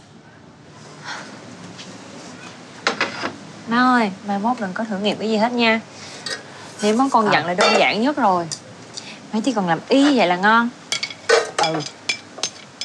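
Dishes clink and clatter.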